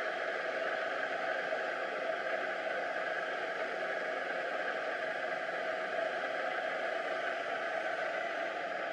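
An automatic laminating machine runs with a steady mechanical whir.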